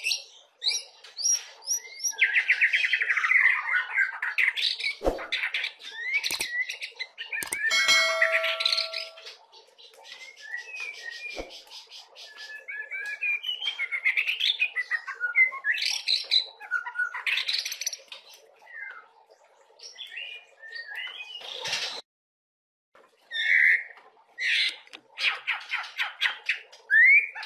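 A songbird sings loud, varied whistles and trills close by.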